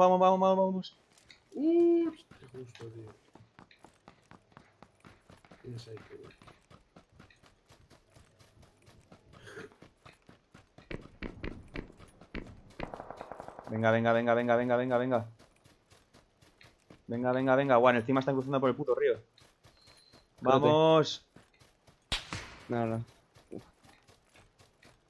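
Footsteps run quickly over grass and dirt.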